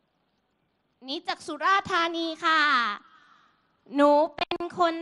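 A young woman speaks with animation into a microphone, heard through loudspeakers.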